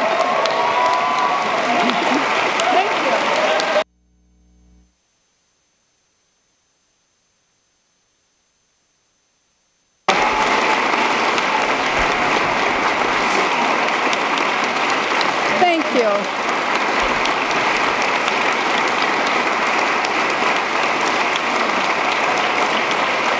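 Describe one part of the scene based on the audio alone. A large crowd applauds steadily in a big echoing hall.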